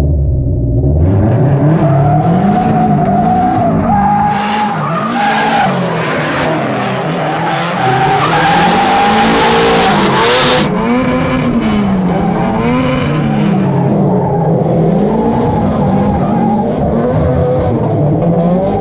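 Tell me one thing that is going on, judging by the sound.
Tyres screech and squeal on pavement.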